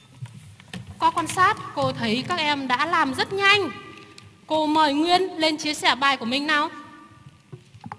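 A young girl speaks clearly into a microphone.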